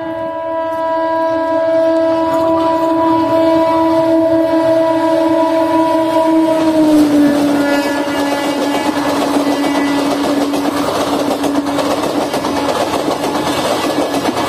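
A train horn blares steadily as a locomotive approaches, then drops in pitch as it passes close by.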